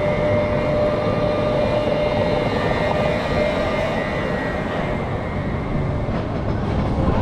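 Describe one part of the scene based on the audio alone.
Wind rushes loudly past outdoors.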